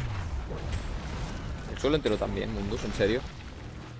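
An explosion bursts with a fiery roar.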